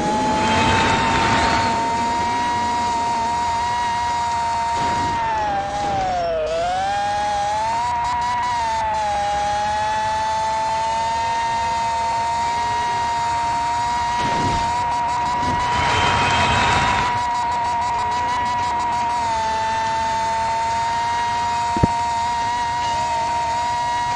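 A racing car engine whines steadily at high pitch, dipping briefly and recovering.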